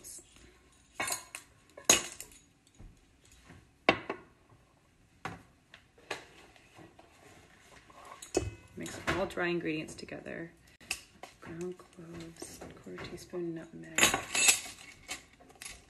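A whisk clinks against a metal bowl.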